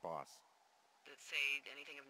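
A woman answers through a radio.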